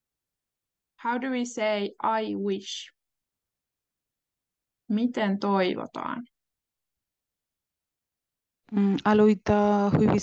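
A woman speaks calmly through an online call, in short bursts with pauses.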